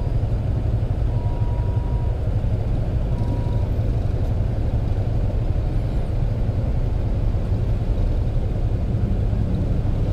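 Motorcycle engines idle and rumble close by in heavy traffic.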